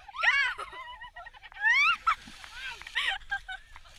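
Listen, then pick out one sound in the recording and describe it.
A young woman splashes into a lake.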